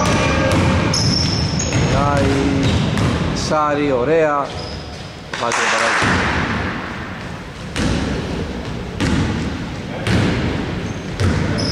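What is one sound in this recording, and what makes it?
A basketball bounces on the court with echoing thuds.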